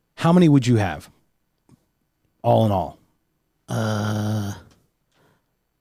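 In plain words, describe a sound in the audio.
A man speaks into a microphone in short bursts.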